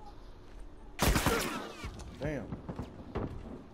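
Gunshots ring out in a rapid burst close by.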